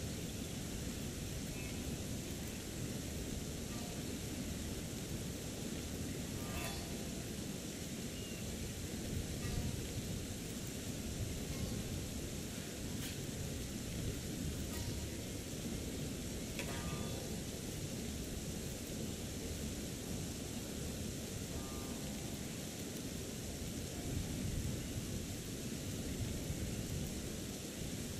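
Water rushes steadily nearby.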